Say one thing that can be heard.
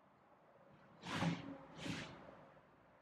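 A man breathes out heavily close by.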